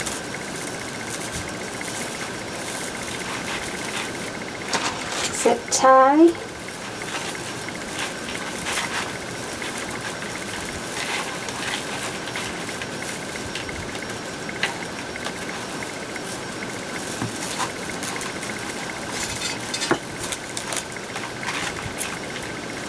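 Plastic mesh rustles and crinkles as hands twist it.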